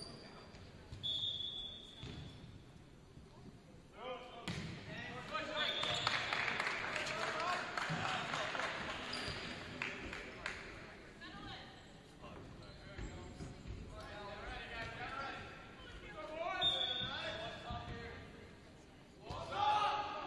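A volleyball is hit with loud slaps.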